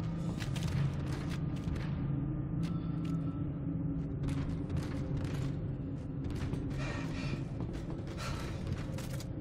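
Heavy metal boots thud steadily on a hard floor.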